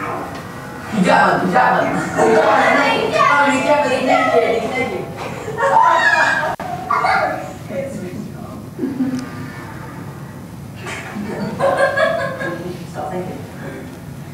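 Several women talk and laugh with animation, heard through a loudspeaker in a room.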